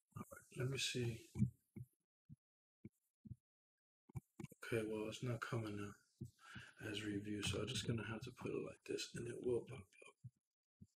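A man talks with animation into a close microphone, with pauses.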